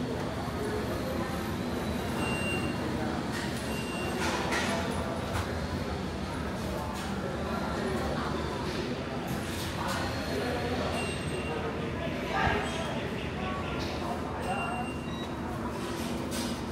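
Indistinct voices murmur in a busy hall.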